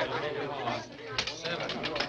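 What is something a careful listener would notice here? A wire dice cage spins and rattles.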